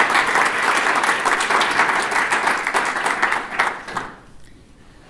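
An audience claps their hands.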